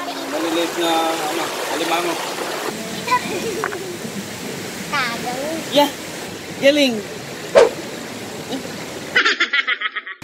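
A stream flows and gurgles steadily nearby.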